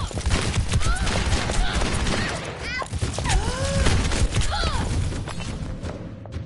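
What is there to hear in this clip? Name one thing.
A revolver fires rapid shots.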